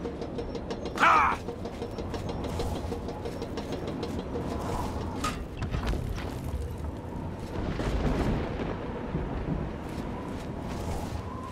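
A magic spell whooshes and shimmers as it is cast.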